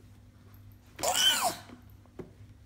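A baby squeals and laughs loudly close by.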